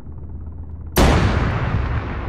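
A loud explosion booms nearby and rumbles on.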